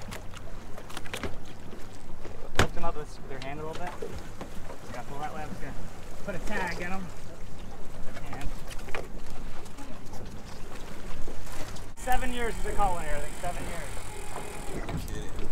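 Water splashes against a boat hull.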